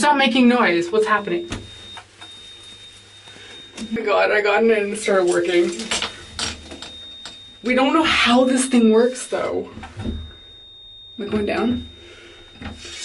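A young woman talks with animation close by, in a small echoing space.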